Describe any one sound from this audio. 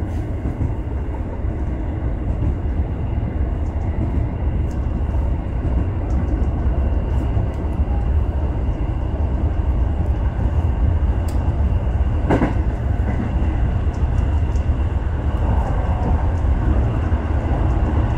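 Train wheels click and clack over rail joints.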